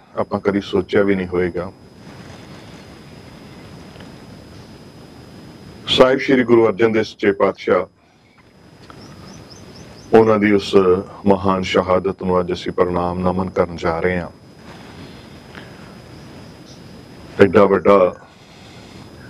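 A man speaks calmly and slowly into a microphone, with long pauses.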